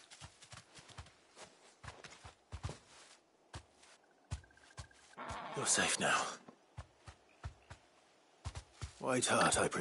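Heavy footsteps thud on soft ground.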